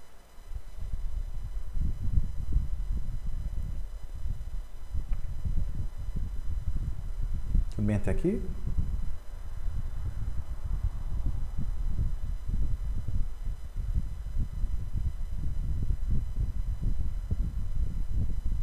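A man speaks calmly and steadily into a close, muffled microphone.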